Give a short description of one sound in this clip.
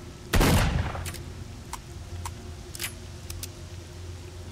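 A shotgun clicks open and shells slide in.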